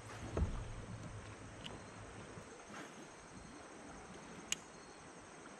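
A paddle dips and splashes softly in calm water.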